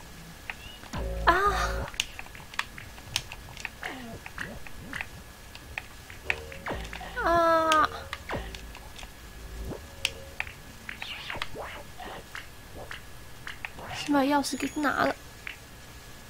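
Short chiming game sound effects chirp and bleep now and then.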